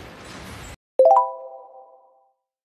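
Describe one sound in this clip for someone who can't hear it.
A short bright chime rings out and fades away.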